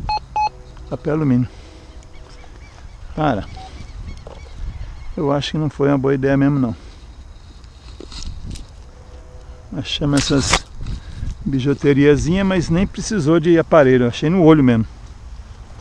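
A metal detector gives warbling electronic tones.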